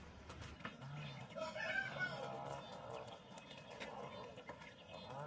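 Ducklings peep and chirp close by.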